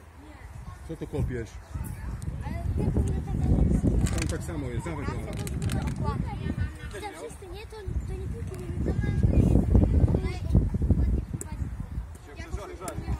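Young boys chatter and talk nearby outdoors.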